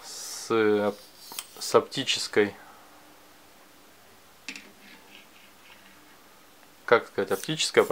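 A metal telescopic rod clicks as it is pulled out and pushed back.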